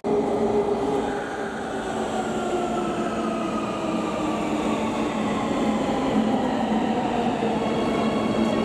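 Train wheels squeal on the rails as a train slows.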